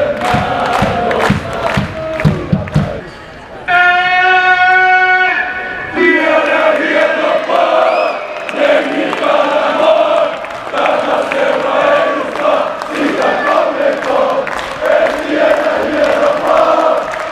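A large crowd of fans chants and sings loudly in a big echoing arena.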